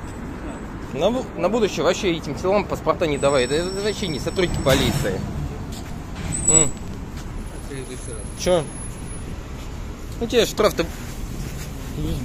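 A middle-aged man talks nearby with animation.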